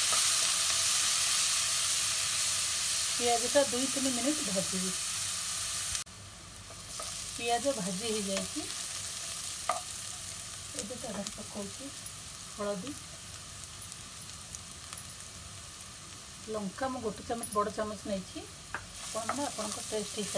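A spatula scrapes and stirs in a metal pan.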